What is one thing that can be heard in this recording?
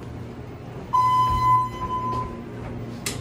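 An elevator chime rings once.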